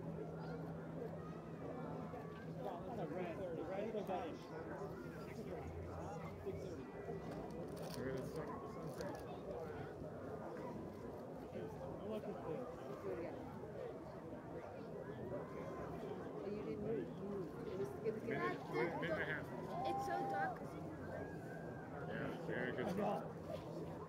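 Several adults talk and chatter nearby outdoors.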